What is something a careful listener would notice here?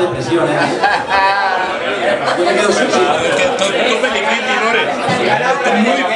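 A crowd of people talk and call out in a busy room.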